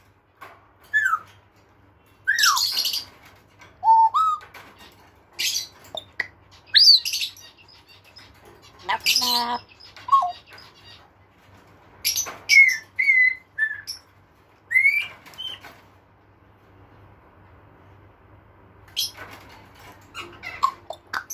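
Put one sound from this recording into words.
A parrot whistles and squawks close by.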